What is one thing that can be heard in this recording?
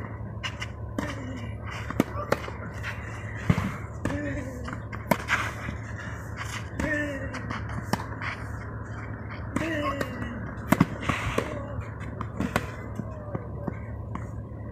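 A man grunts as he hits the ball.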